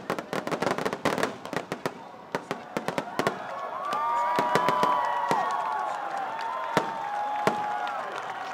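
Fireworks crack and boom in rapid volleys overhead.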